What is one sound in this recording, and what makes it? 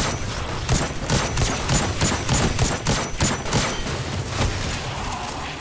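Electric energy crackles and zaps.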